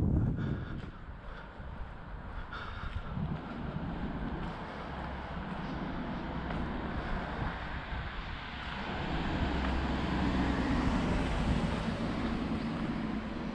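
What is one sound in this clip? Wind rushes past steadily, rising as the ride picks up speed.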